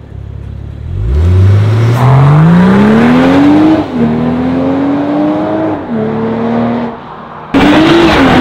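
A car accelerates away, its engine climbing through the gears.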